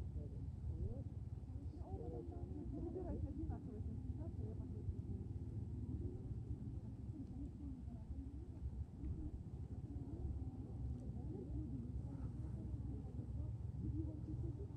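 Wind buffets and rumbles against the microphone outdoors.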